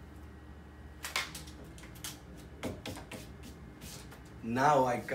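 Paper rustles and taps as a man handles a strip of card.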